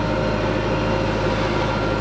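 Loose earth pours from a digger bucket.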